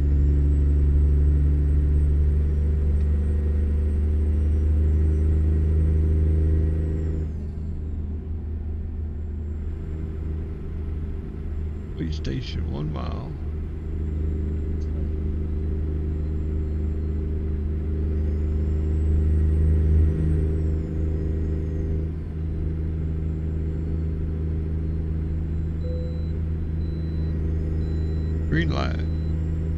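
A truck engine drones steadily at highway speed, easing off for a moment before pulling again.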